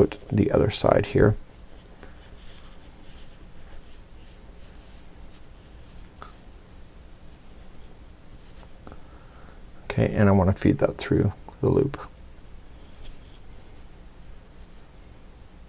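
Yarn rustles softly as it is pulled through a crocheted toy.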